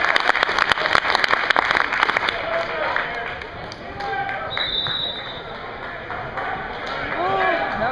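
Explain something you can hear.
A crowd of people shouts and cheers.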